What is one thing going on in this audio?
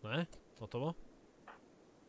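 A young man speaks briefly through a headset microphone.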